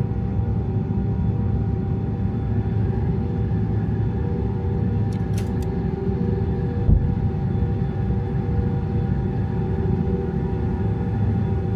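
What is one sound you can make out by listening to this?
Jet engines roar in a low, steady drone.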